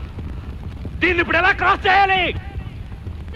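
A man shouts loudly.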